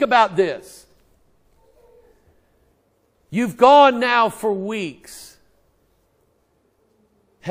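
A man speaks with emphasis into a microphone, in short bursts with pauses.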